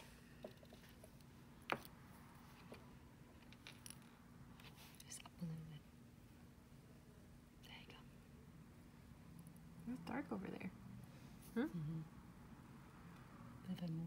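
Long fingernails click and tap lightly against each other.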